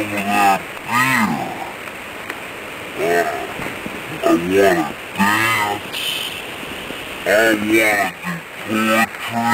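A man speaks close up in a strained, theatrical voice, in short bursts.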